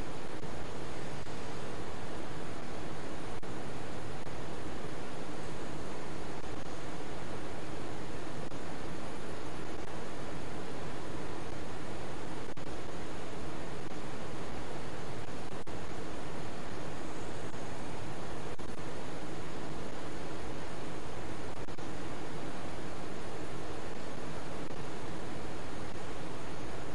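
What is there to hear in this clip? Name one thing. Jet engines drone steadily inside an airliner cockpit.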